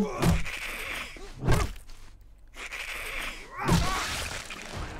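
Heavy blows thud into a body.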